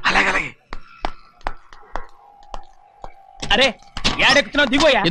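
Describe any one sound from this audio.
A man speaks loudly and excitedly.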